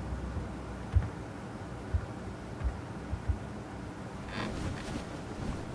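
Storage boxes bump and thud softly as they are handled.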